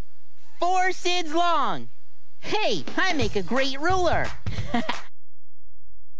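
A young boy's cartoon voice sings and talks brightly into a microphone.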